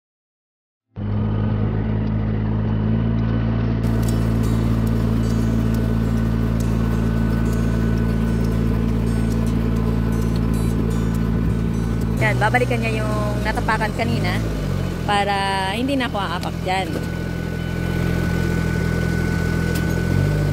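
A machine's engine runs with a steady low hum.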